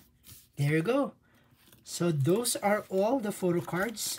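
A binder page is turned with a plastic rustle.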